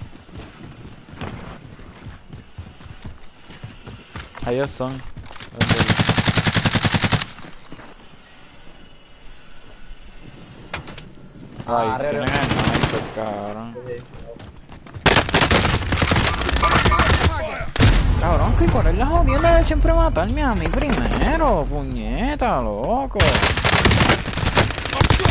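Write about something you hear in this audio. Gunshots ring out in a video game.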